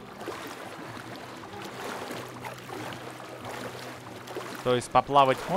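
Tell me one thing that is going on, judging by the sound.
Water splashes softly as someone swims.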